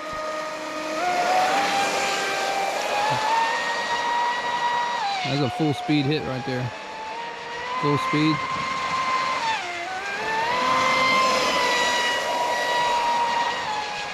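A small model boat motor whines at high pitch, rising and falling as it speeds around.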